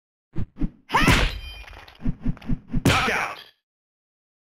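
A sword swings and clashes in a sharp strike.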